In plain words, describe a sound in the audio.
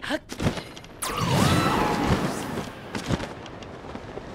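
A strong gust of wind whooshes upward.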